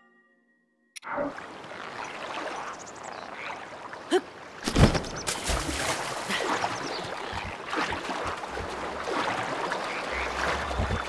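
Water rushes and splashes under a board sliding fast across it.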